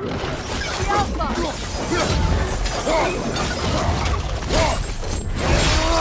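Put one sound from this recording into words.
Flames whoosh and roar in bursts.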